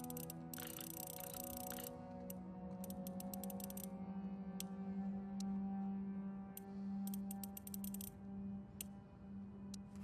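A combination dial clicks as it turns.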